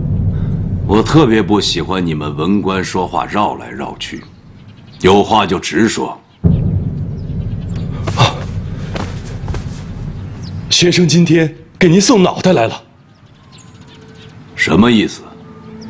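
A middle-aged man speaks in a confident, slightly mocking voice nearby.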